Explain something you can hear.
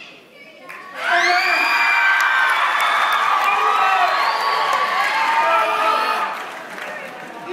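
A group of young people sings loudly in a large hall.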